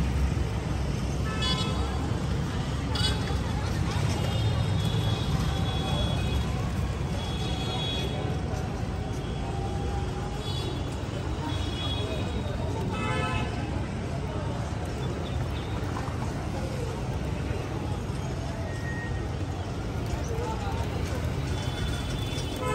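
Pigeons coo and flutter in a flock nearby.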